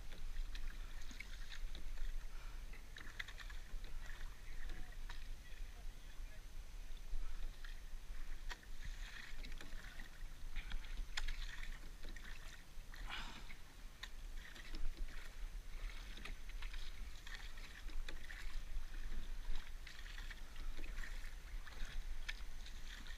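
Water splashes and laps close by as a paddler moves across a lake.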